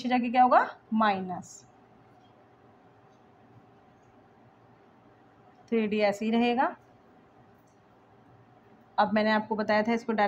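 A young woman speaks calmly and clearly, as if explaining, close by.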